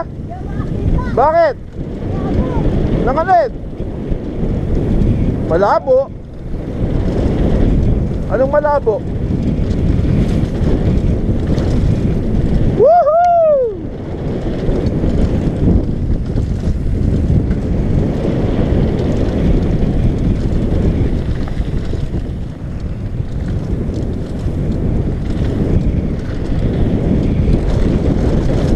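Bicycle tyres rattle and crunch over a gravel trail.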